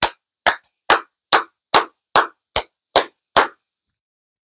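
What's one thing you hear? A man claps his hands rhythmically.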